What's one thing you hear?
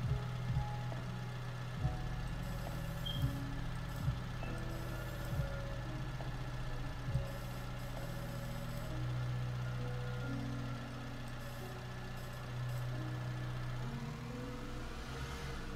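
A diesel engine of a tracked loader rumbles steadily and revs up at times.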